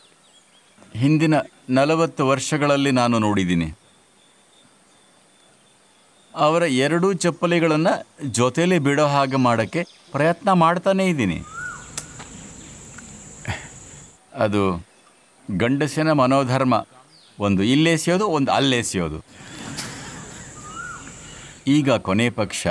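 An elderly man speaks slowly and calmly, close to a microphone, with long pauses.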